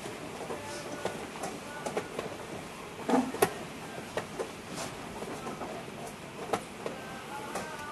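Chess pieces are set down on a wooden board with light clicks.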